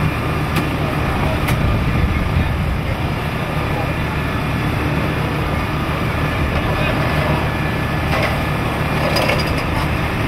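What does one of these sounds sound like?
A large engine runs with a steady low drone.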